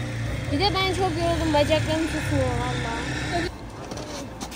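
A young girl speaks close by with animation.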